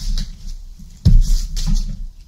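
A cardboard box thumps down onto a wooden table.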